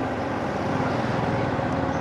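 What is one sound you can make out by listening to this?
A motorbike engine drones close by as it rides past.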